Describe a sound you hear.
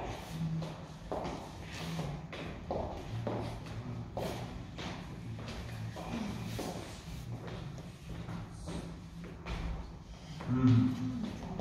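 Shoes shuffle and tap on a wooden floor.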